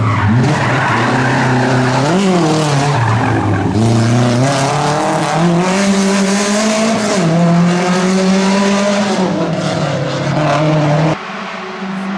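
A rally car engine roars loudly, revving up and down through gear changes as the car speeds past and pulls away.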